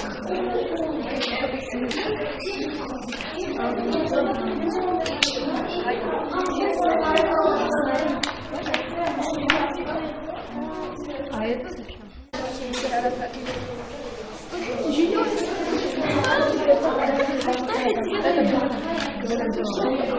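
Young girls chatter and talk together nearby.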